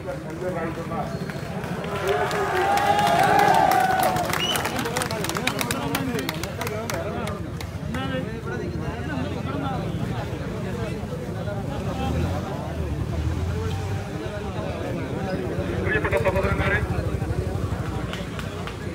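A crowd of men murmurs and talks outdoors.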